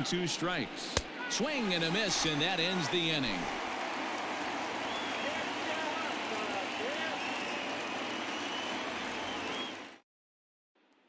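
A large crowd cheers and roars throughout a big echoing stadium.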